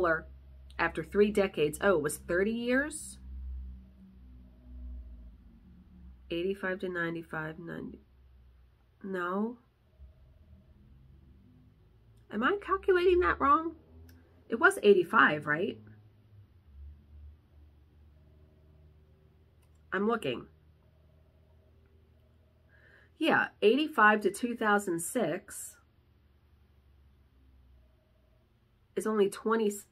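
A woman talks calmly and close up, with pauses.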